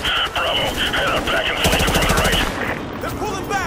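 Gunshots ring out in a room.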